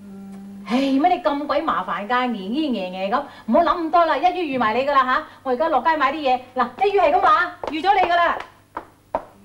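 A middle-aged woman speaks urgently and emotionally, close by.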